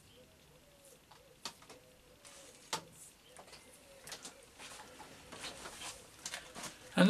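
Small metal parts click and clink as they are handled.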